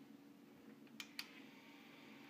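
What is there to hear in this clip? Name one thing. A button clicks on a tape machine.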